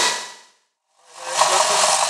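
Metal grinds harshly against a spinning grinding wheel.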